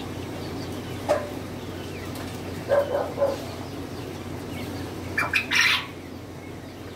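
Chickens cluck and squawk in cages nearby.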